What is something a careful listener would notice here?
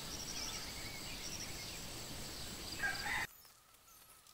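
A water sprinkler hisses as it sprays outdoors.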